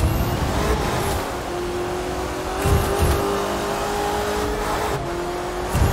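Tyres rumble over a snowy road.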